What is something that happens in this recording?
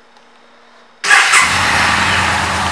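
A motorcycle engine cranks and roars into life.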